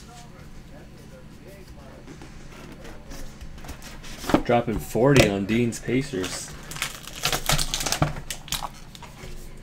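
Cardboard box lids slide and tap on a table.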